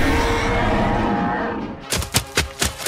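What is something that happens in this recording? A dinosaur roars loudly.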